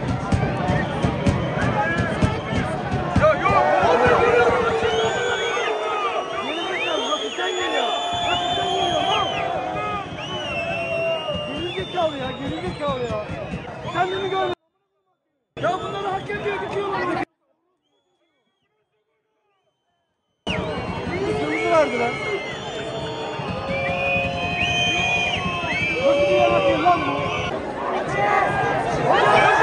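A large stadium crowd chants, shouts and whistles loudly outdoors.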